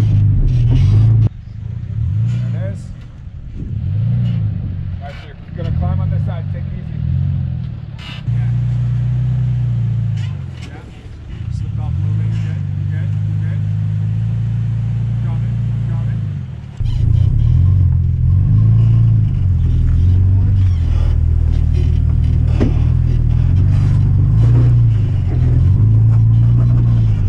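A truck engine rumbles loudly and revs as it crawls over rocks.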